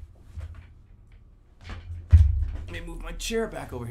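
A young man thumps down heavily into a chair.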